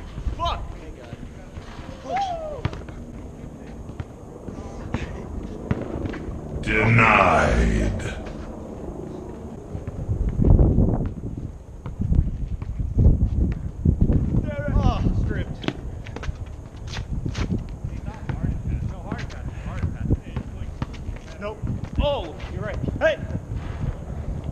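A basketball clanks off a metal rim.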